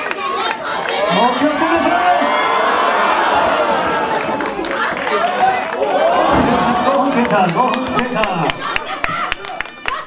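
Young women in the crowd scream loudly.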